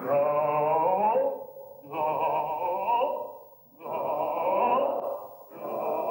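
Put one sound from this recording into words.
A man sings out loudly in a large hall.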